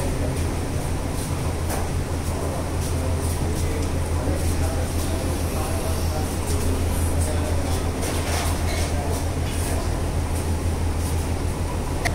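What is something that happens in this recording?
Bare feet shuffle and slap on a hard floor.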